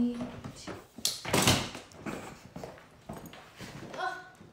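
A suitcase thumps as it is lifted.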